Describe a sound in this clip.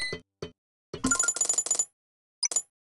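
Coins jingle briefly.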